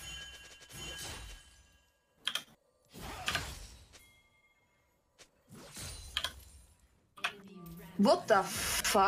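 Video game spell effects whoosh and crackle in short bursts.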